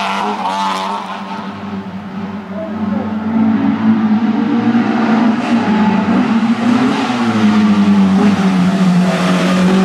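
A second racing car engine roars closer and grows louder.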